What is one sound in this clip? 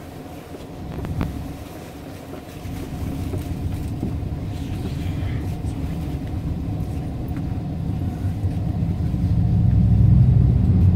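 A train rumbles steadily along the tracks, growing louder.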